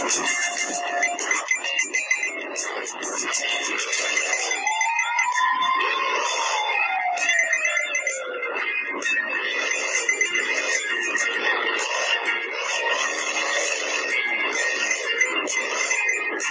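Coins chime in quick bursts as they are collected.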